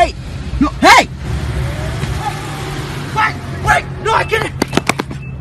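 A young man shouts excitedly up close.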